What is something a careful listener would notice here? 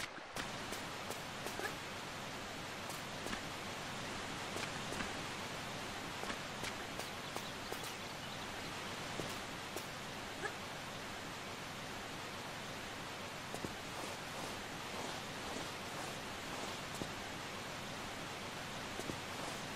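A waterfall rushes steadily nearby.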